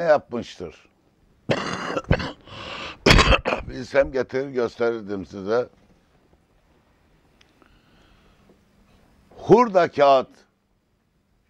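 An elderly man speaks with animation into a nearby microphone, pausing between phrases.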